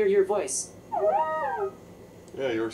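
A small robot plays a short rising and falling chime.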